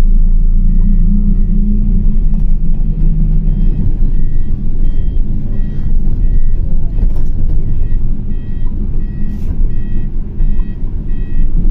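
Motor traffic rumbles steadily along a street.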